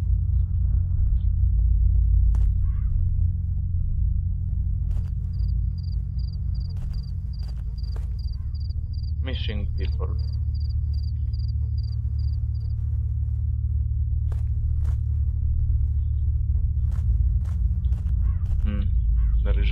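Footsteps crunch steadily on the ground outdoors.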